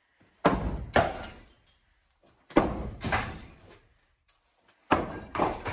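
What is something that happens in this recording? A sledgehammer smashes into a wall with heavy, echoing thuds.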